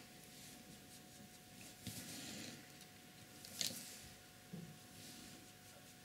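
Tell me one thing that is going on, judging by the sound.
A brush dabs and scrapes softly on paper.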